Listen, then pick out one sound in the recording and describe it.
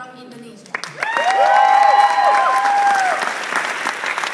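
Young people whoop and cheer.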